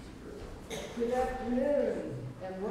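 A man speaks calmly into a large echoing hall.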